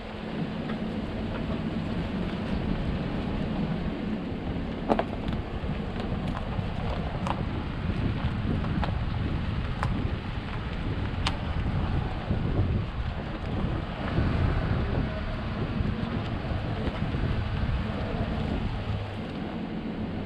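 Tyres crunch over dirt and twigs.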